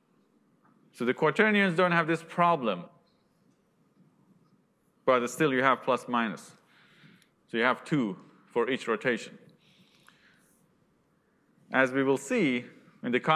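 A man lectures calmly into a microphone, with pauses between phrases.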